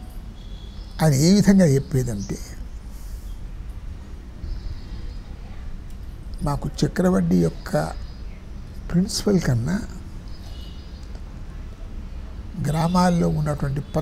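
An elderly man speaks with animation into a close microphone, in bursts with pauses.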